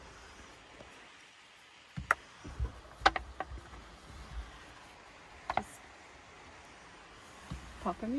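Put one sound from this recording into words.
Plastic rustles and taps as a cover is handled.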